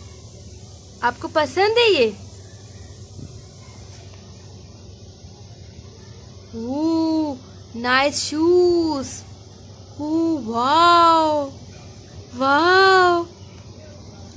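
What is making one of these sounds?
A baby babbles and coos close by.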